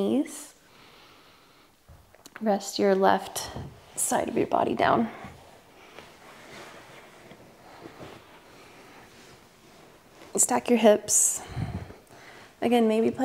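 A young woman speaks calmly and close to a microphone.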